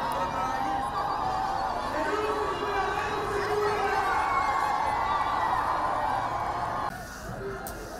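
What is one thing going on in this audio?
A crowd outdoors cheers and sings loudly.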